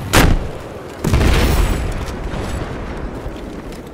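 A helicopter explodes with a loud boom.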